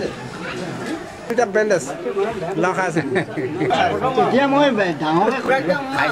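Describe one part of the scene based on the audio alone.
Men talk calmly nearby.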